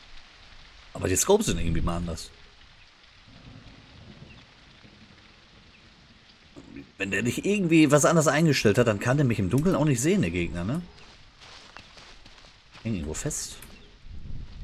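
A man speaks calmly into a close microphone.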